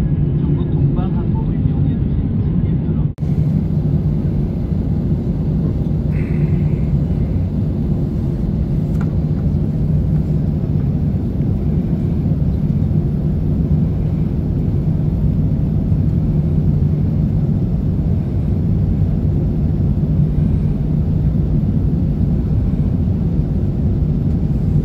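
A jet engine roars steadily from inside an airplane cabin as it taxis.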